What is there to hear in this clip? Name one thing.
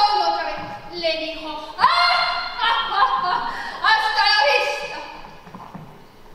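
A young woman speaks loudly and expressively, her voice ringing in a large hall.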